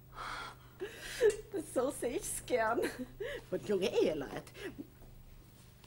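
A middle-aged woman speaks with animation.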